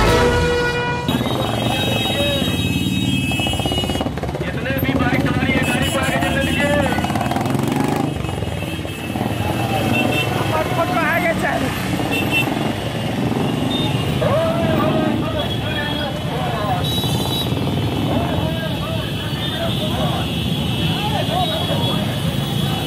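Motorcycle engines rumble and idle.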